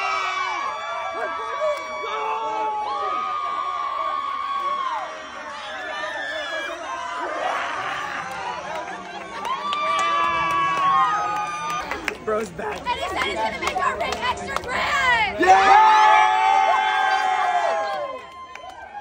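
A crowd of girls and young women cheer and scream loudly nearby.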